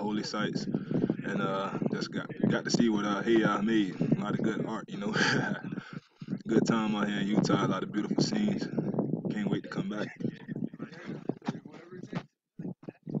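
A young man talks calmly and close to the microphone.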